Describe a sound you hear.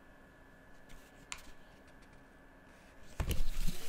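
A paper sheet rustles as it is handled.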